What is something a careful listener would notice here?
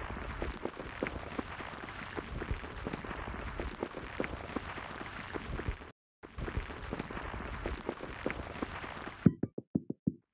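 Sand crunches and hisses steadily as it is dug away.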